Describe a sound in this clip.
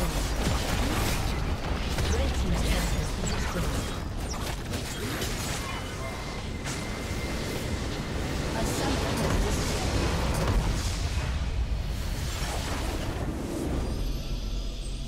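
Magic blasts and blows clash in a loud, busy fight.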